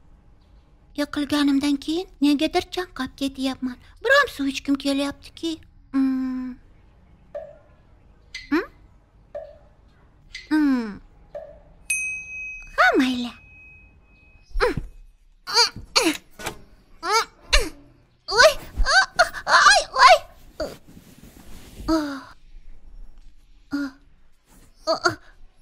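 A young girl speaks sadly and hesitantly.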